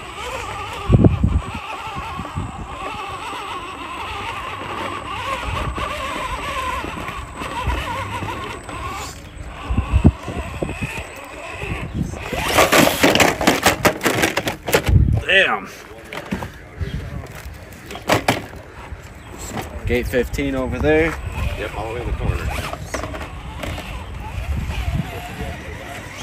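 A small electric motor whines, rising and falling.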